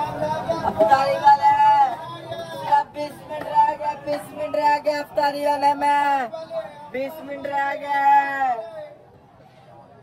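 A boy talks loudly close by.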